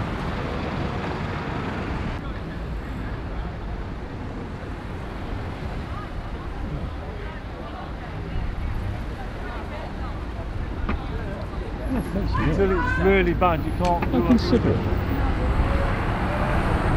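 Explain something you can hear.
A bus engine rumbles as the bus pulls slowly past.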